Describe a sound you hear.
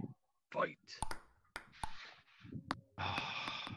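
A table tennis ball clicks sharply off a paddle and the table.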